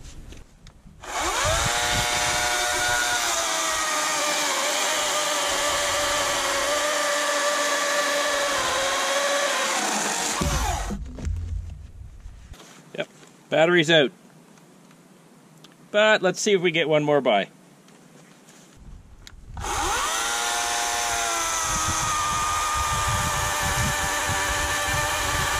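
A chainsaw whines steadily as it cuts through a log.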